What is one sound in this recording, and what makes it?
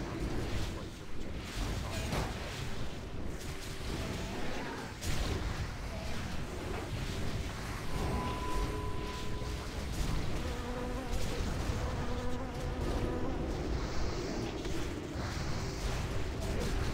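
Spell effects whoosh and crackle in a busy fight.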